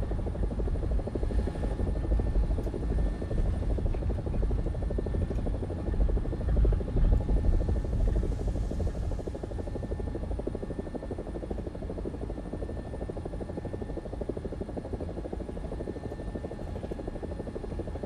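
A helicopter's rotor thumps rapidly and steadily over a droning engine.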